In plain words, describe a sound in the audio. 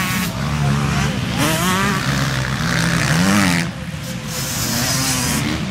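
Dirt bike engines roar and rev loudly outdoors.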